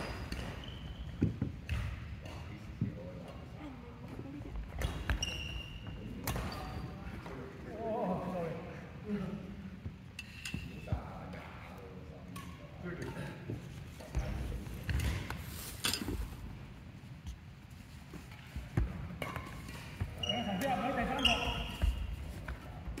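Shoes squeak on a hard floor in a large echoing hall.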